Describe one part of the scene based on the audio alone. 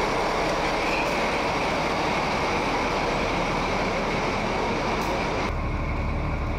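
A diesel locomotive rumbles loudly as it passes close by.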